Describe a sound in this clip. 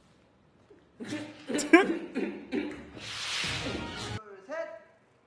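A young man laughs loudly and heartily close by.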